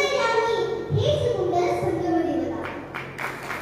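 A man sings loudly through a microphone and loudspeakers in a large, echoing space.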